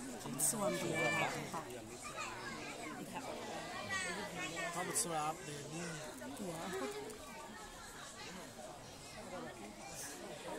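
A panda crunches and chews on bamboo up close.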